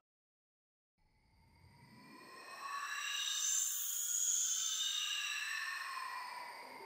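Shimmering electronic tones sweep up and down and slowly swell.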